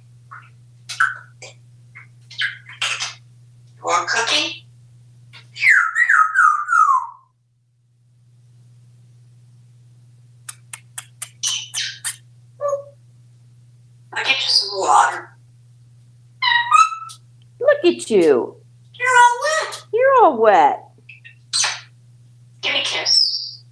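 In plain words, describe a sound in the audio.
A parrot whistles, squawks and chatters in short bursts close by.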